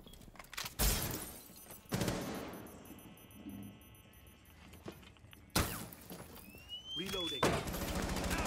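Loud gunshots crack sharply, a few seconds apart, with a ringing echo.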